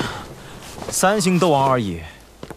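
A middle-aged man speaks in a low, stern voice.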